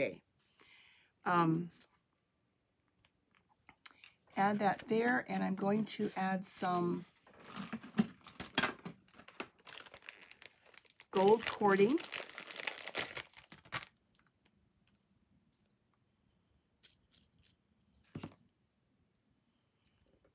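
Paper rustles and slides on a table.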